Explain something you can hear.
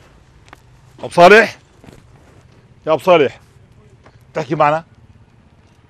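A middle-aged man speaks close by in short bursts.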